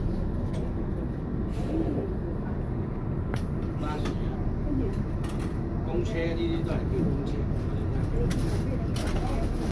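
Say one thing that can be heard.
A train rumbles and rattles slowly along the tracks.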